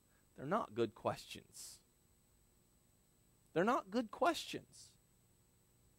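A man speaks calmly in short phrases through a microphone.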